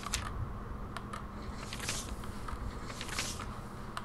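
A page rustles as it turns.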